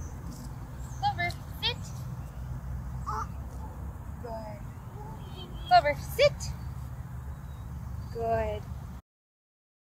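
A woman talks gently to a dog nearby.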